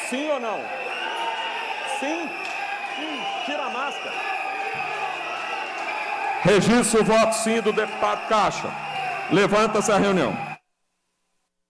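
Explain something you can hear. Many men murmur and talk among themselves in a large echoing hall.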